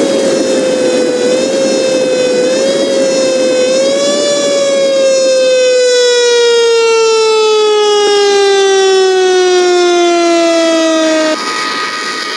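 A vehicle engine hums steadily and slowly drops in pitch as it passes.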